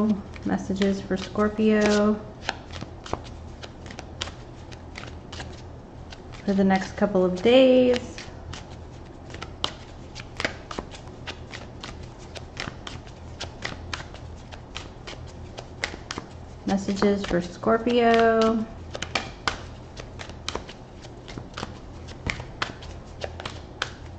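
Playing cards riffle and flick against each other in quick, crisp clicks.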